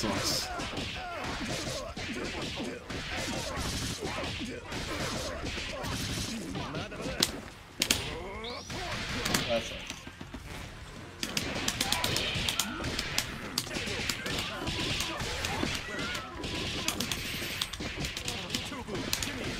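Punches and kicks land with sharp, rapid hits.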